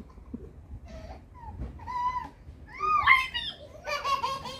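A toddler squeals and babbles in a high voice.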